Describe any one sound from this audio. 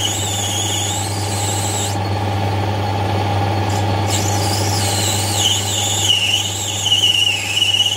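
A cutting tool squeals shrilly against spinning metal, wavering in pitch.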